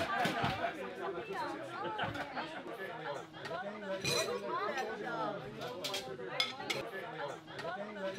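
Several men and women chat nearby in a lively crowd.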